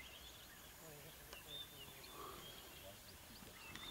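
Dry grass rustles as a lion rolls on the ground.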